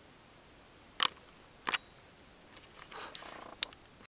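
A small electronic part with wire leads taps and scrapes against paper.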